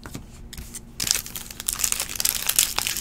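A foil card pack crinkles as hands tear it open.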